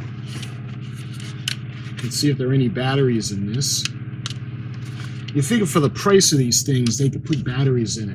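Plastic parts click and knock as hands turn a model.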